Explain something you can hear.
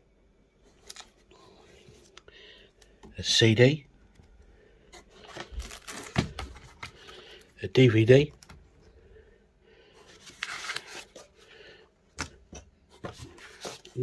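A card rustles as a hand handles it.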